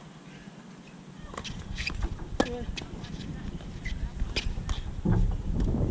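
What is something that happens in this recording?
A tennis ball bounces on a hard court.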